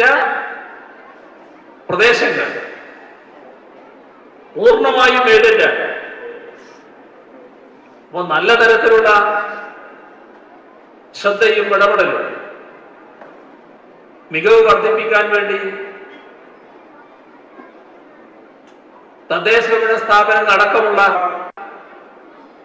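A man speaks forcefully into a microphone over loudspeakers, in short bursts with pauses, echoing outdoors.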